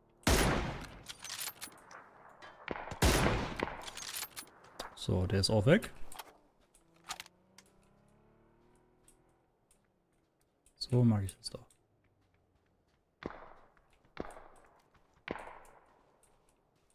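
Rifle shots crack and echo.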